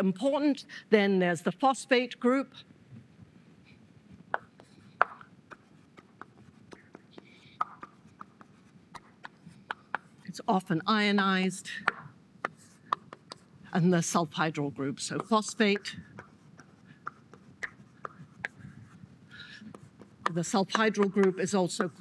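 A woman lectures through a microphone.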